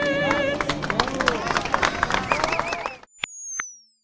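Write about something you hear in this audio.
A crowd of young people chatters and cheers outdoors.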